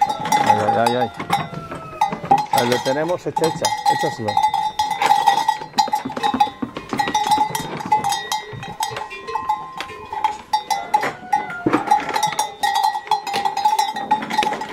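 Calves munch and chew hay.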